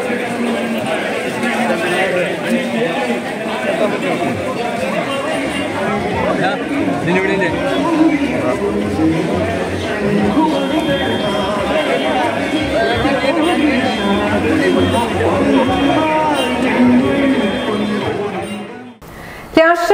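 A crowd of men and women chants and shouts together outdoors.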